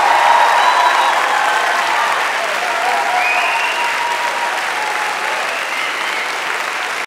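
A young choir sings together in a large echoing hall.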